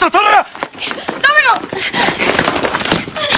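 A young man shouts back in a struggle, close by.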